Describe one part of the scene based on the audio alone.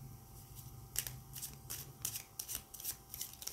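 Playing cards riffle and flick as a deck is shuffled.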